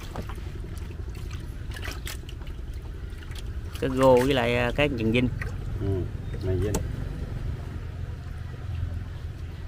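Fish flap and splash in a shallow basin of water.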